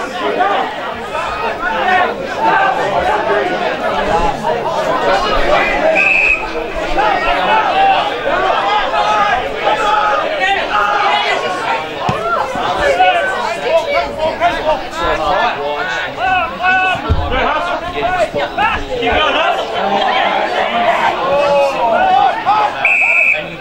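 A crowd of spectators talks and shouts loudly close by, outdoors.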